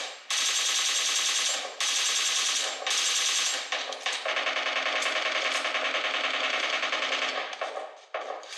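Rapid gunfire rattles from a mobile game.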